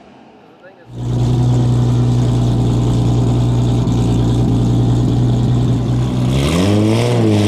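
A powerful car engine idles with a deep, steady rumble.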